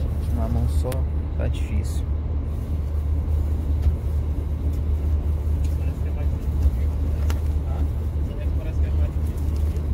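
A cloth bag rustles as hands rummage through it.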